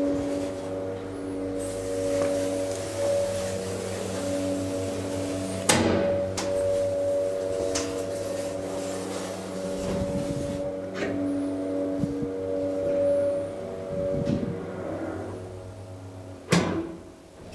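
An elevator motor hums steadily as the car travels, then stops.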